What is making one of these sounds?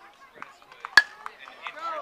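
A metal bat cracks sharply against a baseball.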